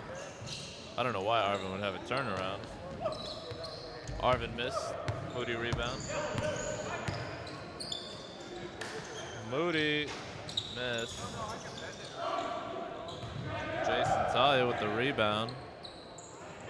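Men shout to each other across a large echoing gym.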